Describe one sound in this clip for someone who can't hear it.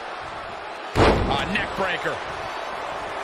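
A wrestler slams down hard onto the ring mat with a loud thud.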